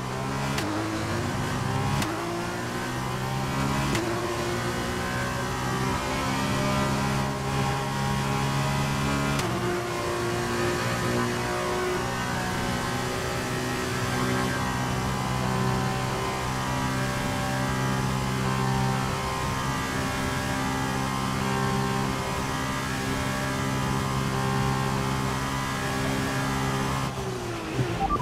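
A racing car engine roars at high revs, stepping up in pitch as it shifts gears.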